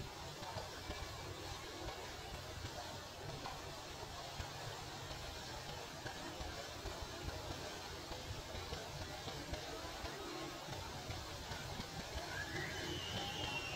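Wind rustles through tree leaves outdoors.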